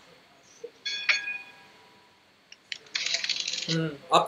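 Computer game dice rattle and clatter.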